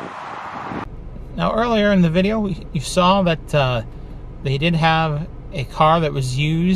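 A man talks with animation close to a microphone in a car.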